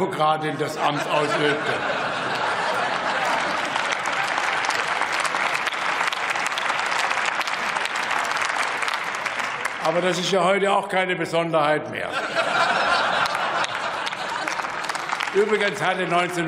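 An elderly man speaks through a microphone in a large hall.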